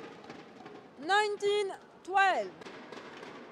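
A young woman shouts loudly in triumph.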